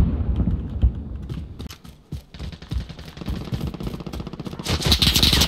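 Footsteps thud quickly as someone runs.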